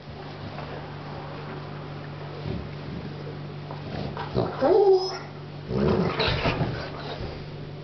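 A puppy chews and tugs on a cloth toy.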